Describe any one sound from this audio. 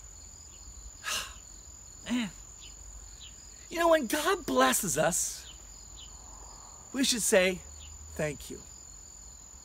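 An older man speaks close by with animation, in short bursts.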